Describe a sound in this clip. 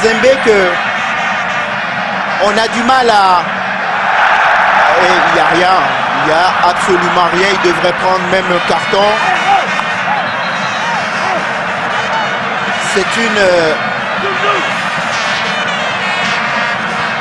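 A large stadium crowd roars and swells with excitement.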